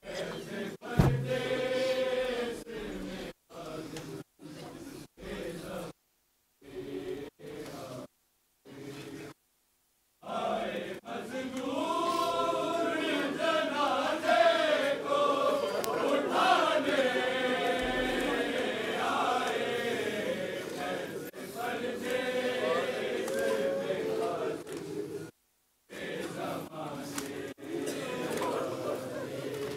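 A crowd of men chants and wails loudly in an echoing hall.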